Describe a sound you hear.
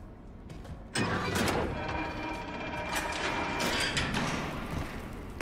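A metal cabinet door creaks open.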